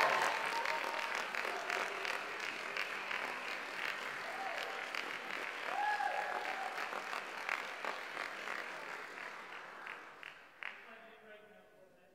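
A woman speaks cheerfully.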